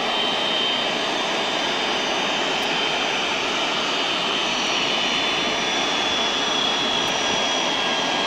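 A jet airliner's engines whine and roar steadily close by as it taxis.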